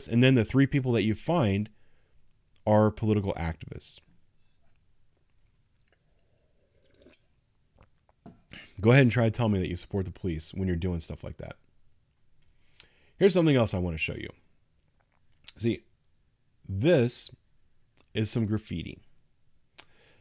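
A middle-aged man speaks with animation into a close microphone, with pauses.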